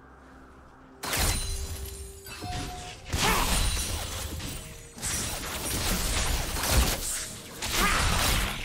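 Magic spells whoosh and burst in a fast fight.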